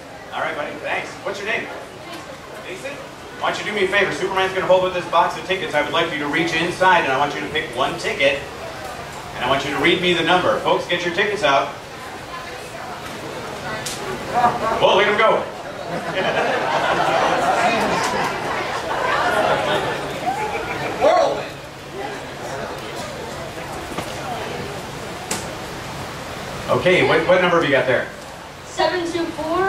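A man speaks to an audience through a loudspeaker.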